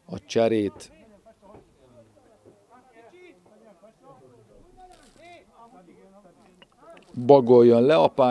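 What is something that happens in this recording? A man speaks steadily, at times loud and animated.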